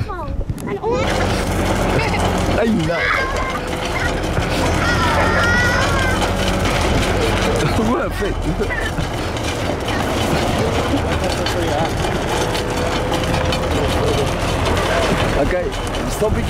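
A board scrapes and slides over loose gravel and dirt.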